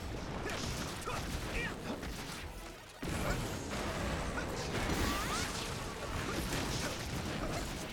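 Explosions burst and crackle.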